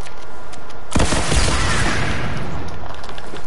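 A loud explosion bursts in a video game.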